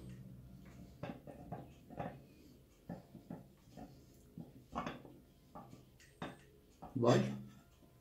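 A fork clinks and scrapes on a plate.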